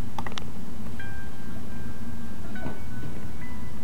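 An electric guitar plays a few soft, sustained notes.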